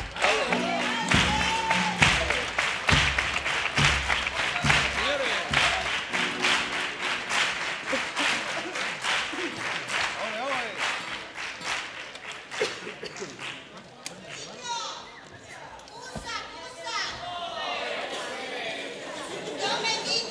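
A guitar is strummed.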